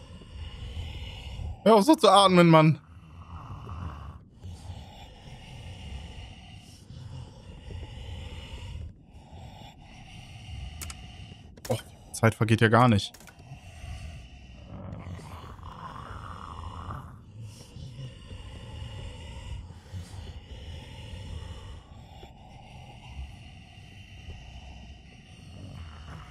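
A man talks calmly and close to a headset microphone.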